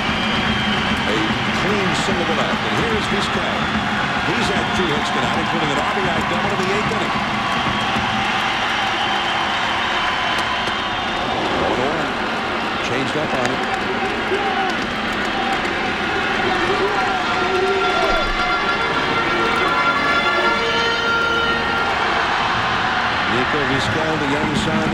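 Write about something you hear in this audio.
A large crowd cheers and murmurs in a big open stadium.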